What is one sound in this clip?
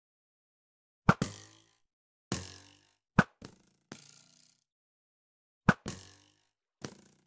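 A bow twangs as arrows are shot, followed by sharp hits.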